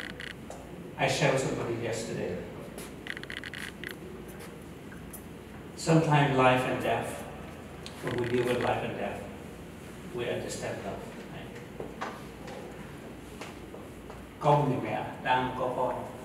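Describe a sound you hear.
A middle-aged man speaks through a microphone, in short bursts with pauses.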